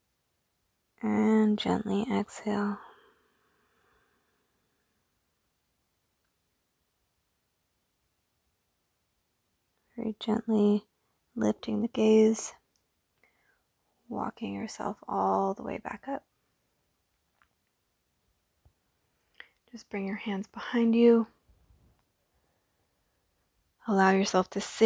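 A young woman speaks calmly and gently through a close microphone, giving instructions with pauses.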